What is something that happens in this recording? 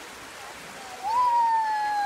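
A young boy calls out loudly nearby.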